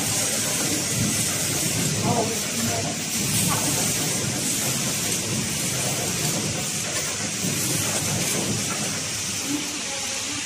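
A rotating brush whirs.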